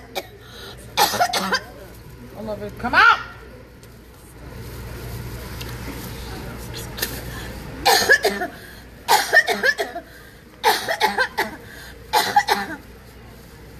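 A young woman retches and vomits into a bag in loud bursts.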